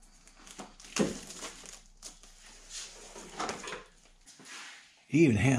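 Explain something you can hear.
A paper gasket rustles and crinkles as it is unwrapped.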